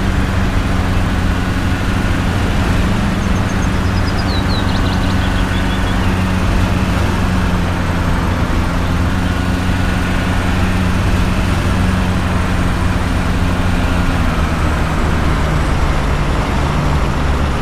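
Tyres roll over a road surface.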